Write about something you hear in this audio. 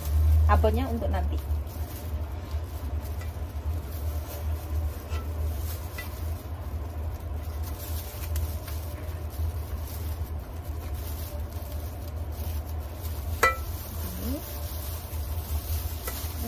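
Plastic gloves crinkle as hands press rice.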